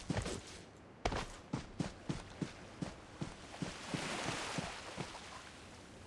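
Footsteps tread quickly over grass.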